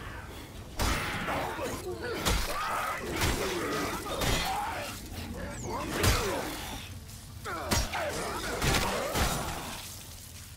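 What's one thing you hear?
A creature snarls and shrieks.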